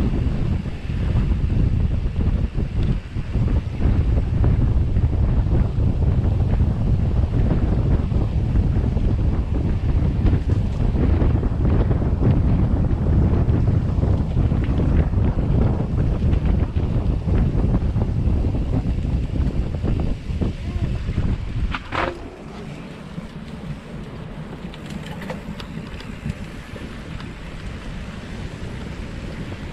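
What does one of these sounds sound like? Bicycle tyres roll and rattle over a bumpy dirt path.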